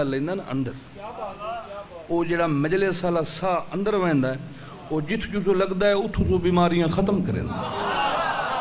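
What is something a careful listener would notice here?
A man recites with passion into a microphone over loudspeakers.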